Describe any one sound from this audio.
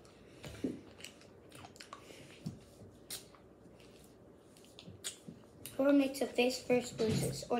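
A boy blows a raspberry with his tongue.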